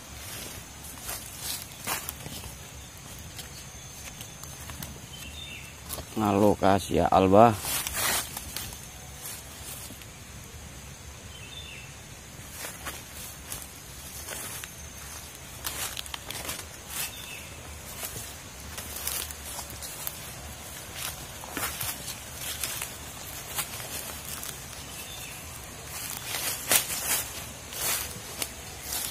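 Dry leaves rustle and crackle underfoot.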